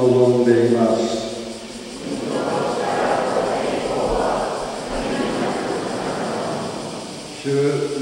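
A man chants through a loudspeaker in a large echoing hall.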